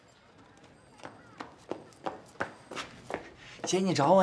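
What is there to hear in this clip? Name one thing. Footsteps hurry closer on hard ground.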